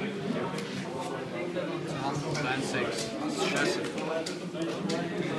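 Playing cards in plastic sleeves rustle and click as they are handled.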